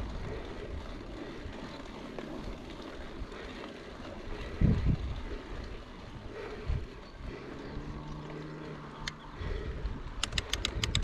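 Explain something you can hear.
Bicycle tyres crunch and rumble over a dirt trail.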